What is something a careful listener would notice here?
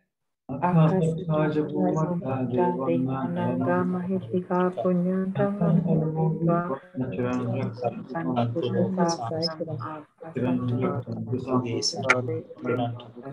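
A man speaks steadily over an online call.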